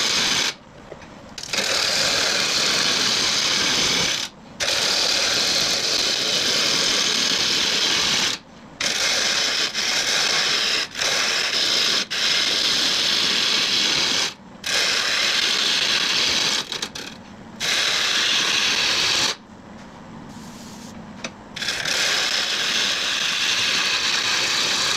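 A wood lathe hums as it spins.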